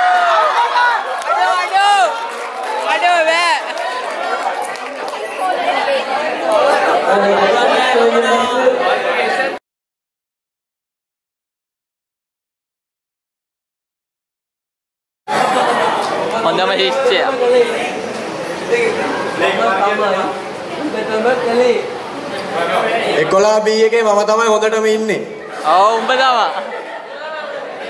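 A crowd of young people cheers and shouts in a large echoing hall.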